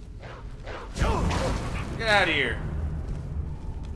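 Flames burst with a loud whoosh and crackle.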